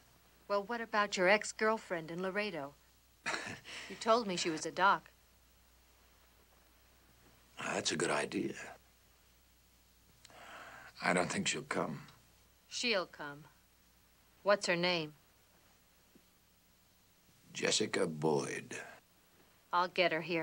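A woman speaks softly and tenderly, close by.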